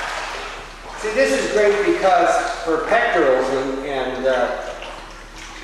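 A man calls out loudly from across the water, echoing.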